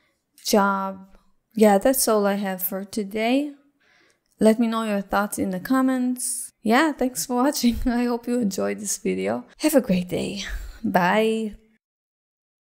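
A woman speaks calmly and warmly into a close microphone.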